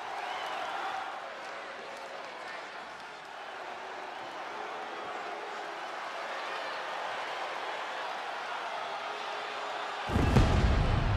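A large arena crowd cheers and murmurs.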